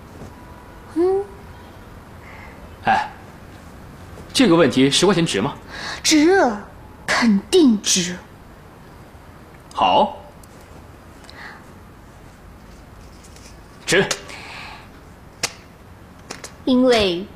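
A young woman speaks brightly and with animation.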